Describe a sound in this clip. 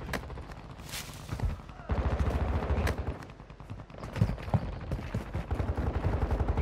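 Quick footsteps thud on hard ground.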